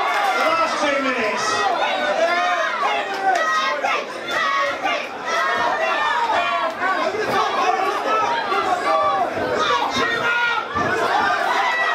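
Boxing gloves thud against each other.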